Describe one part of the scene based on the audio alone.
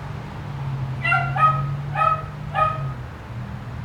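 A bird chirps a few times close by.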